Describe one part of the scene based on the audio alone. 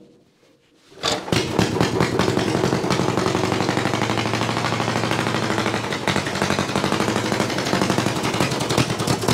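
An old tractor engine sputters to life and runs with a loud, rapid chugging.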